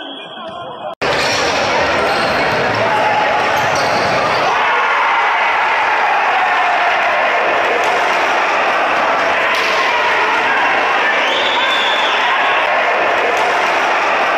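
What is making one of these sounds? A crowd cheers loudly in an echoing indoor hall.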